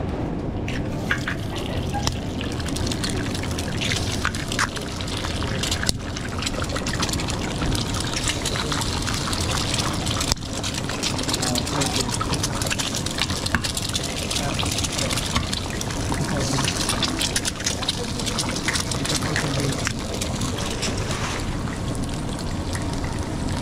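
Eggs sizzle and crackle on a hot griddle.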